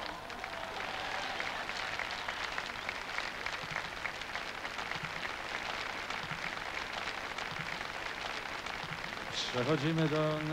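A large crowd claps and cheers outdoors.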